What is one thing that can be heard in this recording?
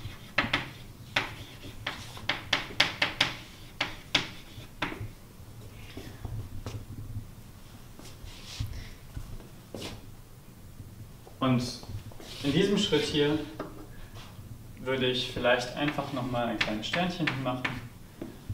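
Chalk taps and scratches on a board.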